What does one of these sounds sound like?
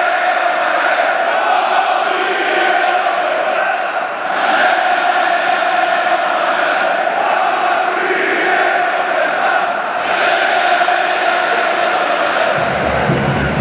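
A huge stadium crowd sings and chants loudly in unison, echoing around the arena.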